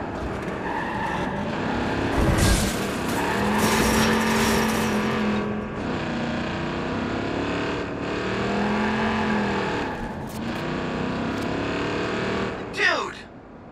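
A truck engine roars and revs as it drives fast.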